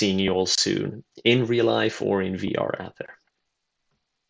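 A young man speaks calmly into a microphone, heard as an online presentation.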